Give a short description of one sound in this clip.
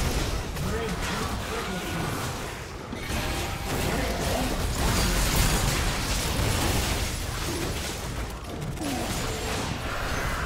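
Video game spell effects whoosh, crackle and clash during a fast battle.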